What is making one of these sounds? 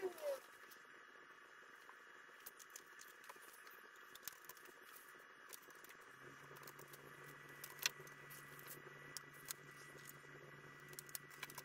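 Small aluminium parts clink as they are handled.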